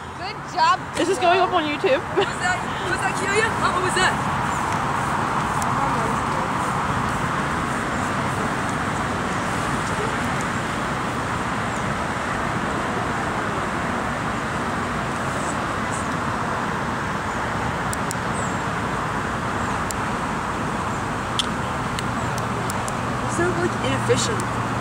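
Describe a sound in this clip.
A young woman talks and laughs nearby.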